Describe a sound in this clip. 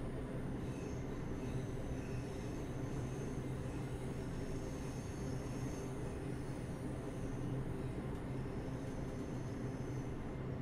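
A train rumbles steadily along the tracks with a low hum from its motor.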